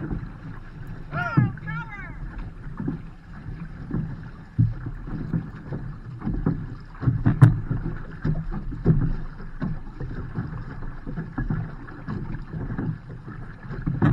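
Water sloshes against a boat hull close by.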